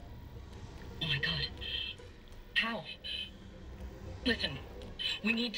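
A man speaks urgently through a crackly radio call.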